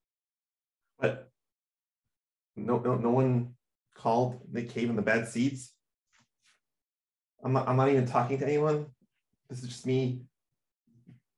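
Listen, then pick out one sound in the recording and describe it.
A man speaks in short bursts, heard through an online call microphone.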